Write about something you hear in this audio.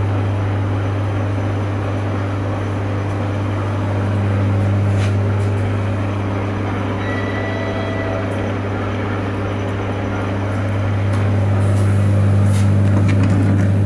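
A train engine hums with a steady low drone.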